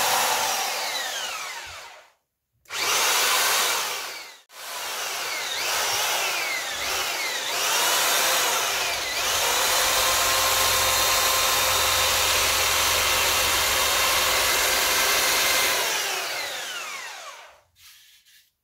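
A power tool whirs loudly, spinning up and winding down several times.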